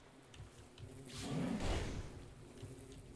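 A fireball bursts with a loud whoosh.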